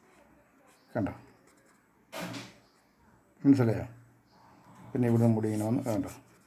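A pen scratches lightly on paper.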